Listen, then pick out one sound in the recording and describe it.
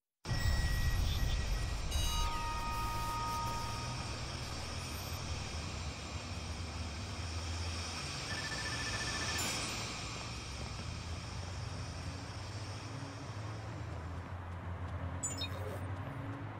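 Footsteps tread steadily on stone and pavement.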